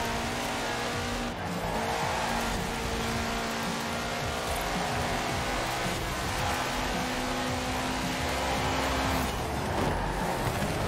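A racing car engine roars steadily at high revs.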